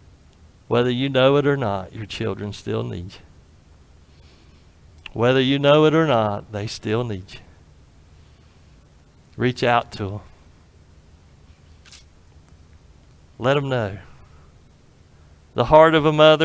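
A middle-aged man speaks in short bursts with pauses, through a microphone.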